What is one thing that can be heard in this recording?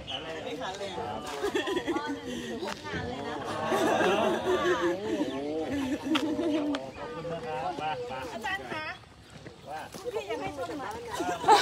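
A young woman talks with animation outdoors.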